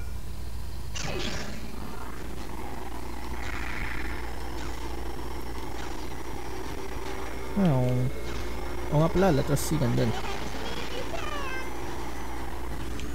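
Kart engines roar and whine as they race.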